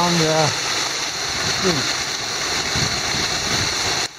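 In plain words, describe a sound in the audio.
A shallow stream rushes over rocks.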